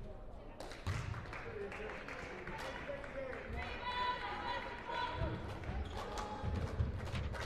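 A ball bounces on a hardwood floor.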